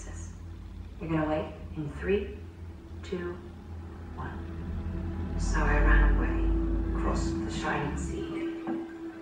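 A young woman speaks quietly and casually close to a microphone.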